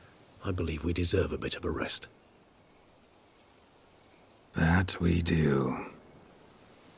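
A man speaks calmly in a low, gravelly voice.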